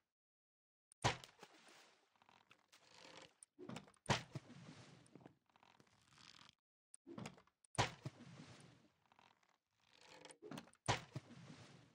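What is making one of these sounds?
A wooden boat clunks down onto water.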